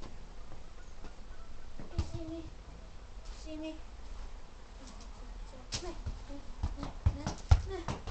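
A ball bounces with dull thuds.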